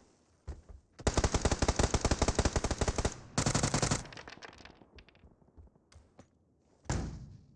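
An automatic rifle fires in rapid bursts close by.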